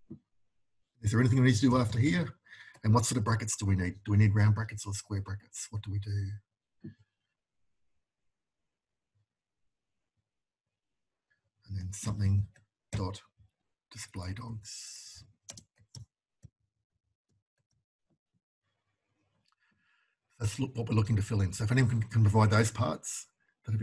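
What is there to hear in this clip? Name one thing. A man speaks calmly into a microphone, explaining in pauses.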